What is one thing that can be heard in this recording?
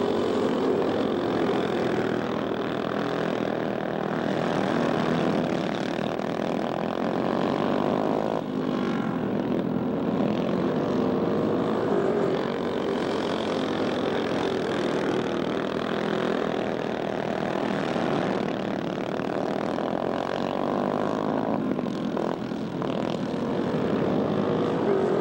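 Small kart engines whine and buzz loudly as they race past, rising and falling in pitch.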